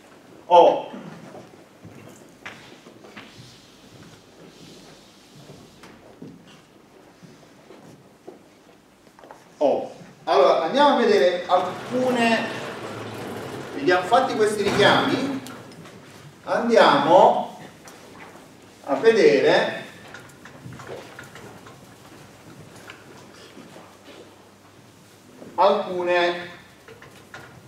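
A middle-aged man lectures aloud in an echoing room, speaking in short bursts.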